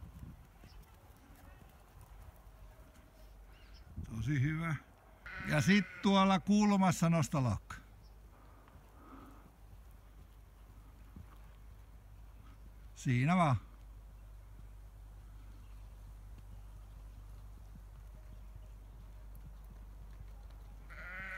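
A pony's hooves thud softly on sand at a trot.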